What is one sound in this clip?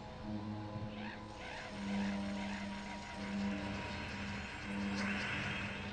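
Gentle electronic game music plays with steady held notes.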